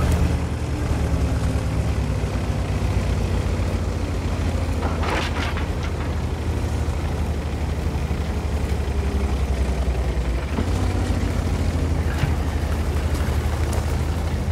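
Tank tracks clatter and squeak over the ground.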